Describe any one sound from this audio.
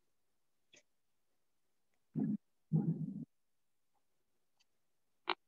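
Stiff paper rustles softly as hands handle it.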